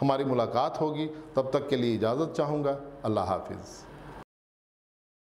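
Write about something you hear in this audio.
A middle-aged man speaks calmly and clearly into a close microphone.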